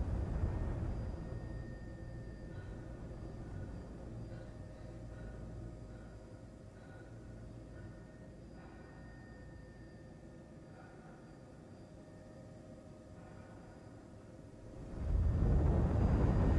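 A spaceship engine hums low and steadily, then swells loudly near the end.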